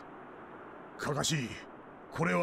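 A second man speaks in a low, serious voice.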